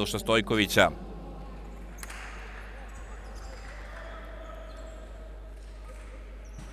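A small crowd murmurs faintly in a large echoing hall.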